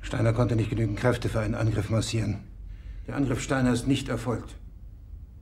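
A middle-aged man speaks firmly and close by.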